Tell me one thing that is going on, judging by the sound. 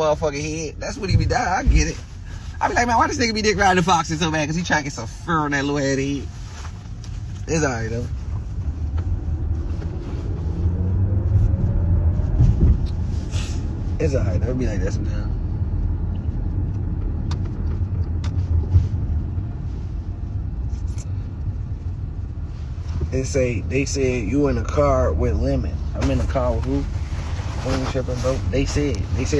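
A young man talks casually close to a phone microphone.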